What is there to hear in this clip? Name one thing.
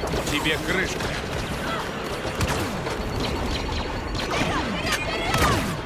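Blaster guns fire sharp zapping shots.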